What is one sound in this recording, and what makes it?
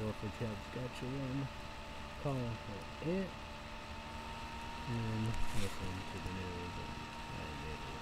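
A young man talks close to a microphone, in short bursts.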